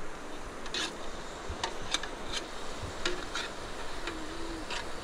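A metal spoon scrapes and clinks against a cooking pot.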